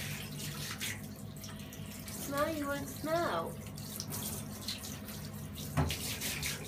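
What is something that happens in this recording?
Water sprays from a shower head and splashes steadily.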